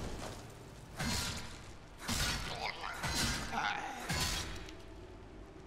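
A sword strikes a fighter with sharp blows.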